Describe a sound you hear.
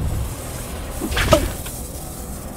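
Electricity crackles and zaps loudly.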